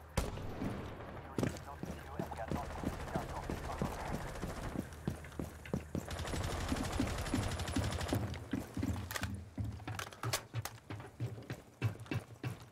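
Footsteps thud quickly on hard ground while running.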